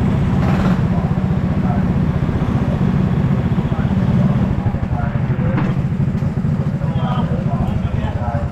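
Go-kart engines idle with a low, steady rumble.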